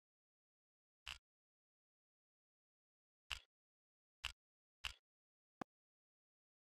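Short menu clicks sound one after another.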